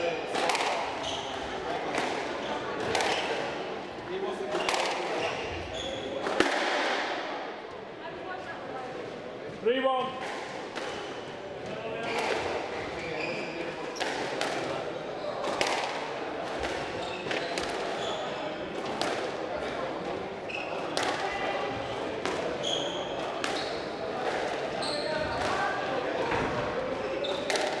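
A squash ball smacks sharply against the walls in quick, repeated hits, echoing in a hard-walled court.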